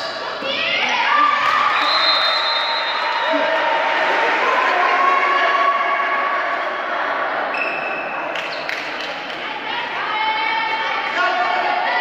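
Sneakers squeak sharply on a hard court floor.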